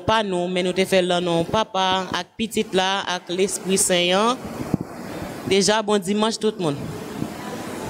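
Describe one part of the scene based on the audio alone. A young woman sings into a microphone through loudspeakers in an echoing room.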